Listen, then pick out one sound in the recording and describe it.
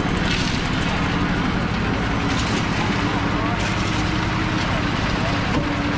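Shovels scrape into gravel.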